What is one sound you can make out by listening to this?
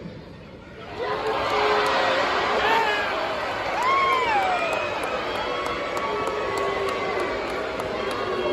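A large crowd cheers and chatters in a big echoing arena.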